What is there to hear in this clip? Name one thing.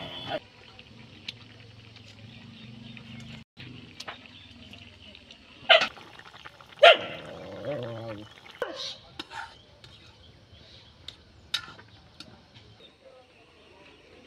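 A metal spoon clinks and scrapes against a pan.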